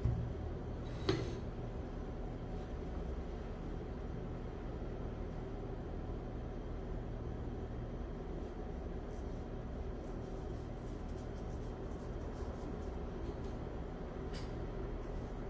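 A brush taps and scrapes against a ceramic dish.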